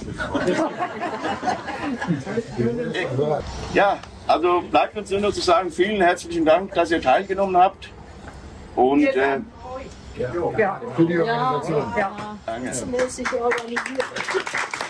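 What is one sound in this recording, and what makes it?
A man speaks calmly to a small group outdoors.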